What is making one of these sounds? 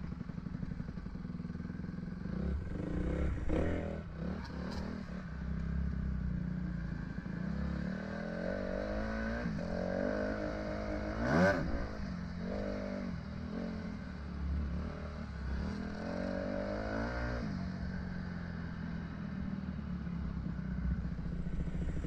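A dirt bike engine revs up and down as it rides.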